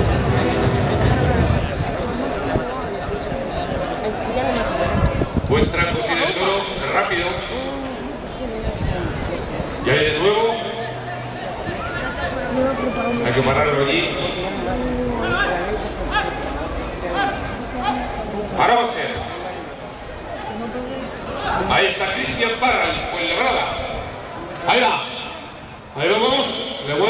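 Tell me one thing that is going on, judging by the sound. A large crowd murmurs and shouts throughout.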